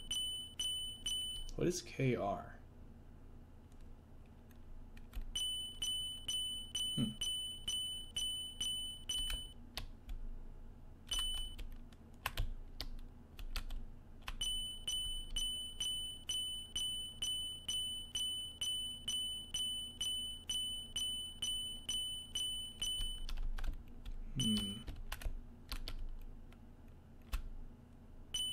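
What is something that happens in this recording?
Upbeat electronic game music plays with a quick, steady beat.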